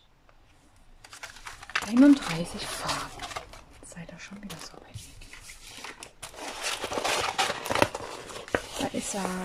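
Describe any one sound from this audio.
Paper and stiff canvas rustle and crinkle as they are handled.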